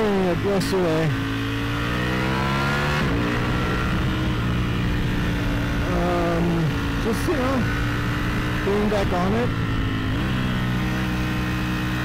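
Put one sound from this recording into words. A motorcycle engine hums and revs up and down as gears shift.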